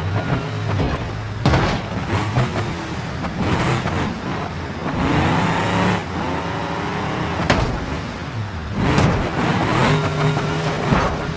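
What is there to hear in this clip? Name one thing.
Metal crunches and bangs as a car crashes and tumbles.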